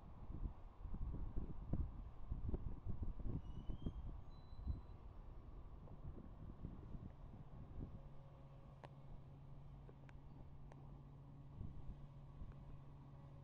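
A passenger train rumbles past close by on the tracks.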